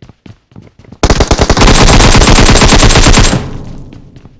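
A rifle fires a rapid, loud burst of shots close by.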